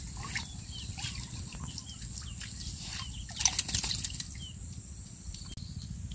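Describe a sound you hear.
Water drips and splashes from a net trap lifted out of a pond.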